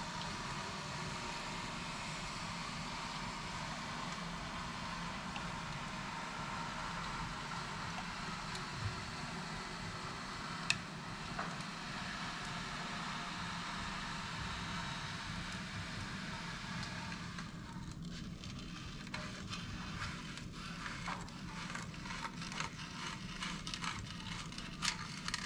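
A power saw hums steadily as it cuts.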